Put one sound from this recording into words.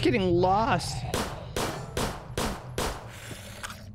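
A pistol fires several quick shots.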